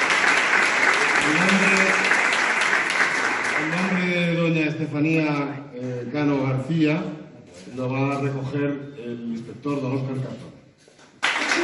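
A man speaks calmly into a microphone over loudspeakers in an echoing hall.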